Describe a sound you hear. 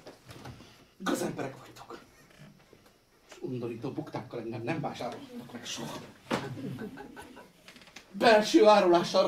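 A middle-aged man speaks theatrically on a stage.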